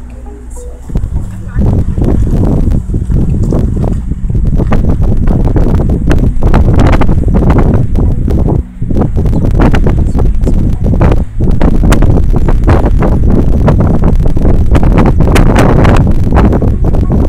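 Strong wind buffets the microphone outdoors, roaring and gusting.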